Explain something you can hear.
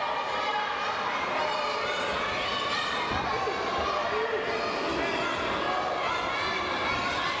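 Wrestlers' feet thump on a mat.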